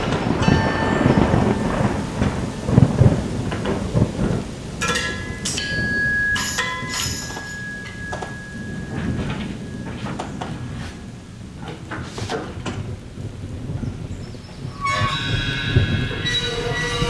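A drummer taps and scrapes small percussion and cymbals in a free, sparse pattern.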